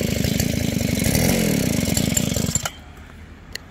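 A small gasoline engine buzzes loudly close by, then suddenly cuts out.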